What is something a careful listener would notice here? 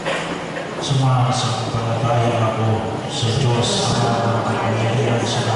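A woman reads out through a microphone over a loudspeaker.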